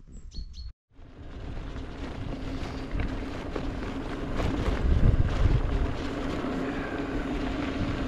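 Bicycle tyres crunch over a gravel road.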